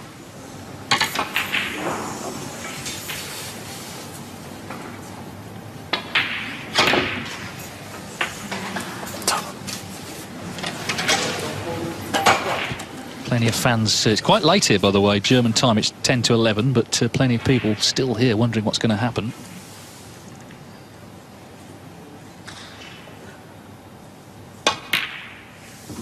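A snooker cue strikes the cue ball with a sharp click.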